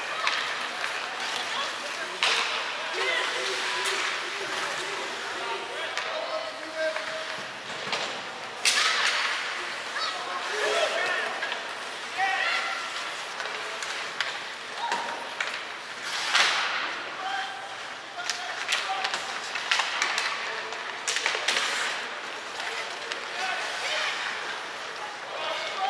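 Skates scrape and hiss across the ice in a large echoing arena.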